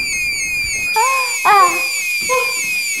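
A young woman screams loudly.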